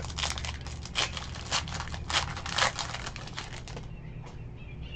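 A foil wrapper crinkles and tears close by.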